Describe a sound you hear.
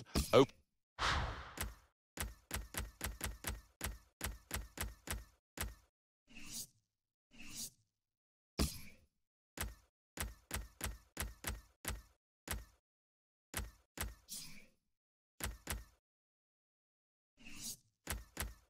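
Short whooshing swipes sound as menus open and close.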